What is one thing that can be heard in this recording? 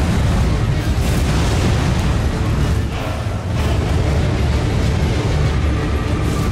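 A whirling gale roars and rushes.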